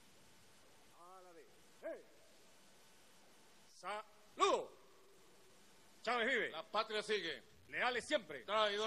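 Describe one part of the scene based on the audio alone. A man speaks firmly through a microphone in short bursts.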